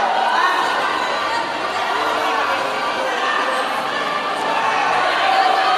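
A crowd of men and women chatters in a large echoing hall.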